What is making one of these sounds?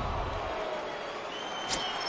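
A stadium crowd murmurs in the distance.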